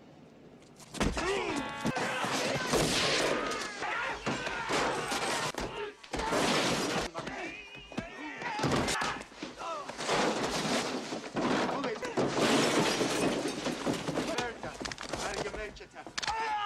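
Men shout and scuffle loudly.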